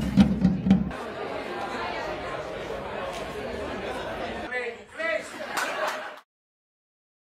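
A crowd chatters and murmurs.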